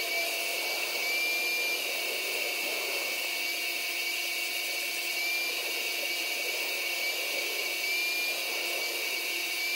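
A spray gun hisses in short bursts.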